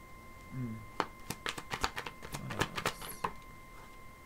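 Playing cards are shuffled with quick, sharp flicks.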